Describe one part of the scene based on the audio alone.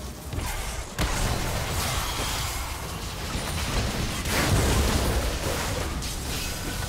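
Magic blasts and whooshes burst out in a fight.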